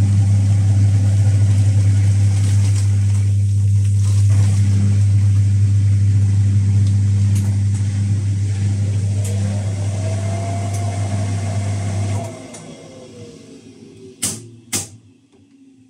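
A dial on a washing machine clicks as it is turned.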